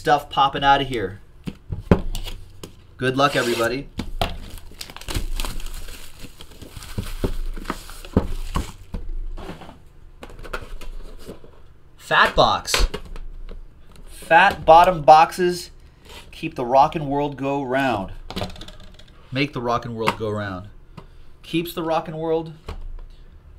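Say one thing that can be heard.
Cardboard and plastic boxes rustle and tap as hands handle them.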